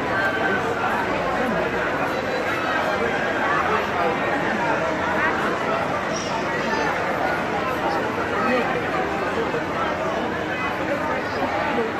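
A crowd of men and women chatter loudly all around outdoors.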